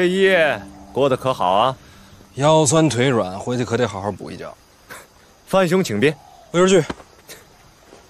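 A young man replies playfully, close by.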